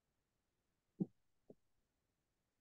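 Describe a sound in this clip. Kitchenware clinks softly.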